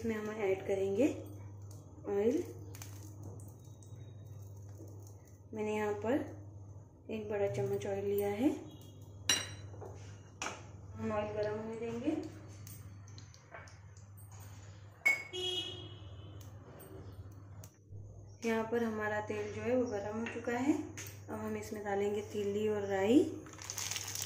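Liquid pours into a small metal pan.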